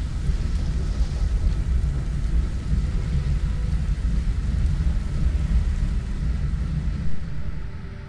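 A large fire roars and crackles.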